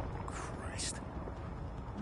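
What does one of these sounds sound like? A tiltrotor aircraft's rotors drone overhead.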